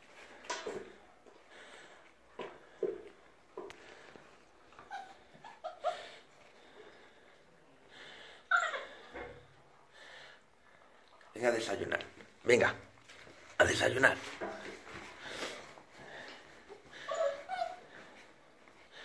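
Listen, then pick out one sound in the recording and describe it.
Puppies whimper and yelp.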